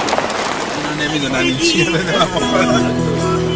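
Men laugh and chatter close by inside a vehicle.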